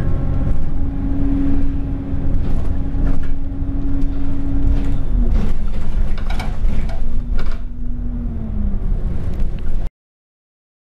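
A bus engine hums steadily from inside the moving bus, with the pitch dropping as it slows.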